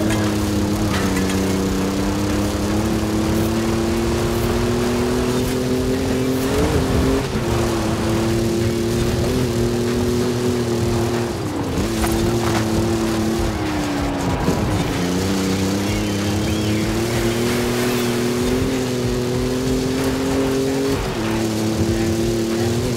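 An engine roars steadily, rising and dropping in pitch with gear changes.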